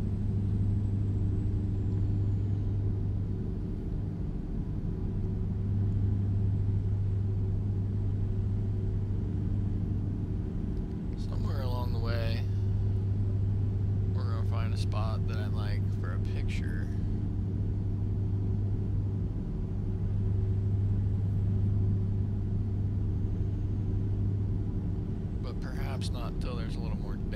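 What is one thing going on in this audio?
A truck engine drones steadily at low pitch.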